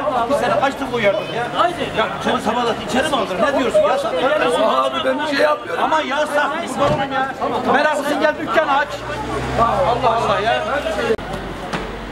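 Several men talk loudly and with animation.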